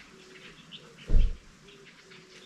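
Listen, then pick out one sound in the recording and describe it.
A raccoon shifts in a wire cage and knocks against it with a dull thump.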